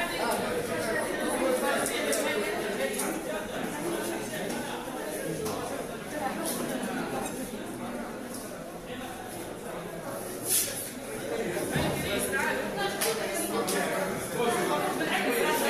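A crowd of men and women talk at once in a busy room.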